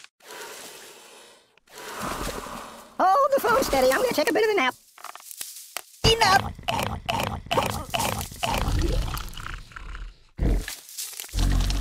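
A cartoon plant chomps and munches noisily.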